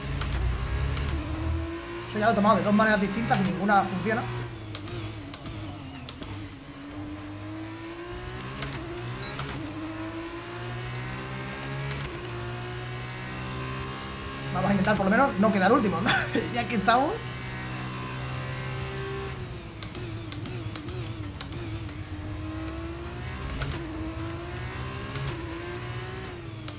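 A racing car engine whines and revs up and down through the gears.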